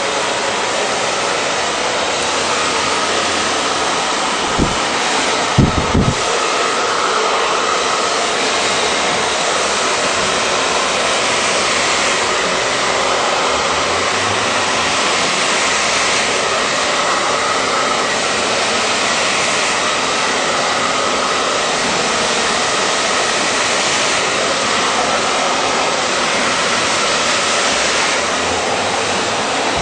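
A hair dryer blows with a loud, steady whoosh close by.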